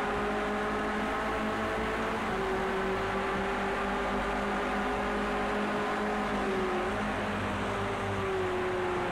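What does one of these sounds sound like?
Rain hisses steadily.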